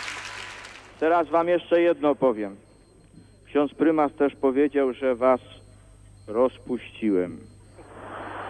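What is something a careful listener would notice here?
An elderly man sings slowly into a microphone.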